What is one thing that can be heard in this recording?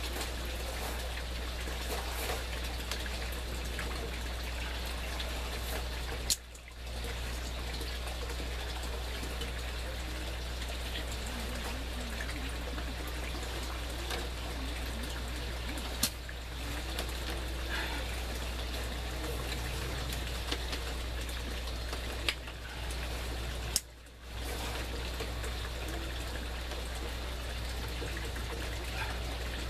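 Leaves rustle as vines are pulled and handled.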